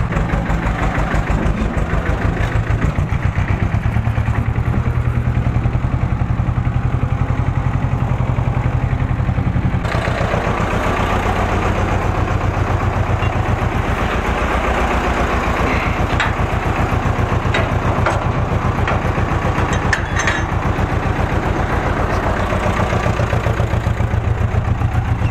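Loose metal parts rattle on a tractor as it drives.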